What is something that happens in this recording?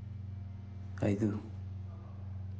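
A young man answers briefly and quietly.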